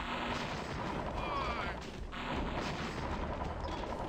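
Explosions boom in quick succession.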